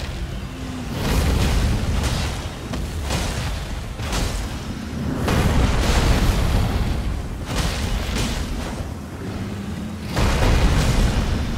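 Heavy impacts crash and boom during a fight.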